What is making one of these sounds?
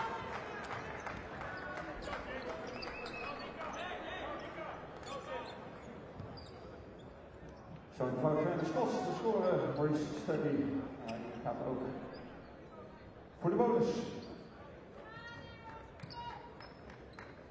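A large indoor crowd murmurs and cheers in an echoing arena.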